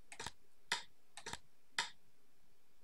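Short electronic menu clicks sound several times.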